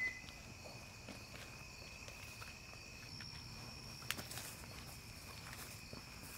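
Footsteps walk slowly on a hard path.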